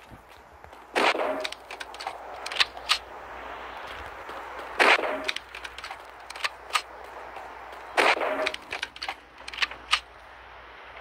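A gun fires sharp loud shots.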